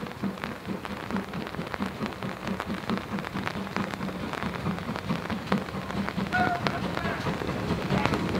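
Steel wheels clank over rail joints.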